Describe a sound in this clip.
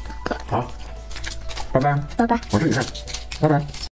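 A small boy chews crunchy candy close to a microphone.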